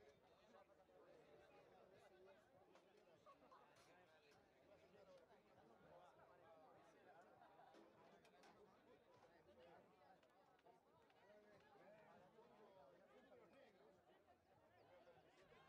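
Young men shout and call to each other on an open field.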